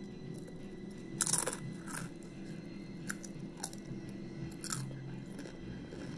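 A teenage boy crunches a crispy chip while chewing.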